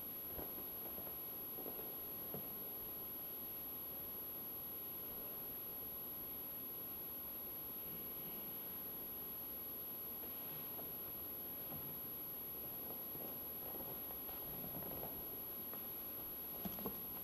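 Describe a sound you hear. Footsteps echo softly through a large, reverberant hall.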